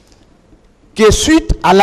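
An older man speaks forcefully into a microphone.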